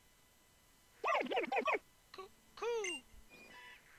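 A small cartoon owl creature gives a short chirping cry.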